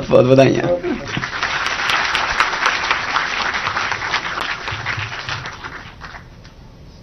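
A large audience applauds.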